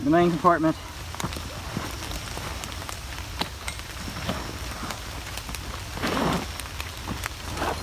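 Zippers and straps rustle on a nylon backpack.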